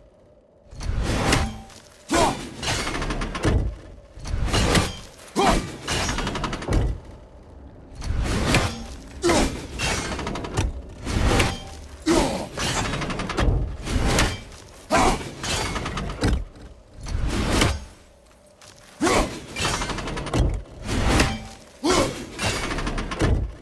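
An axe strikes a hard surface with a sharp clang.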